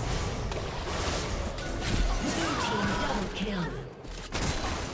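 Video game fight effects crackle and burst in quick succession.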